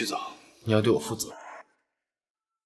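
A young man speaks close by in a low, teasing voice.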